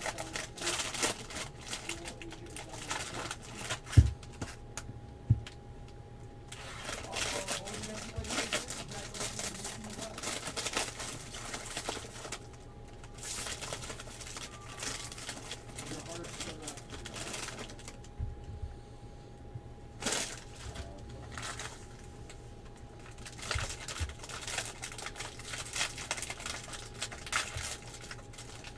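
Cardboard packs and trading cards rustle and slide in hands.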